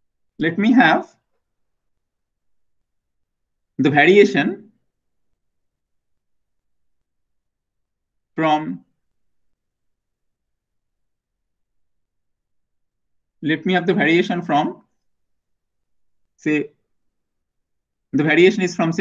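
A man speaks calmly through a microphone, in short bursts with long pauses.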